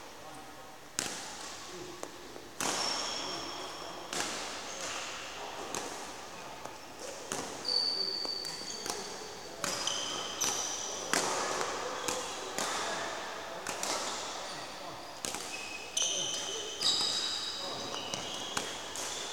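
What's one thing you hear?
Badminton rackets sharply strike shuttlecocks again and again, echoing in a large hall.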